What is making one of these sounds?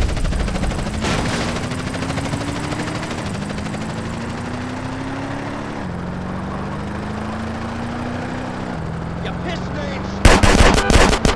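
A car engine revs and shifts gears as the car speeds up.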